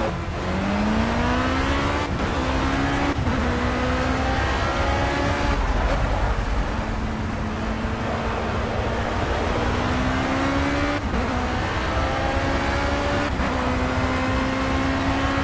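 Tyres rumble over the track.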